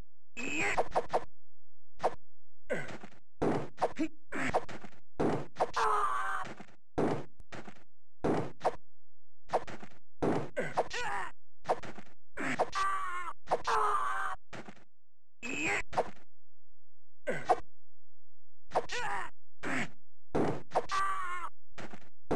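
Swords clash and clang in short, sharp bursts of a video game fight.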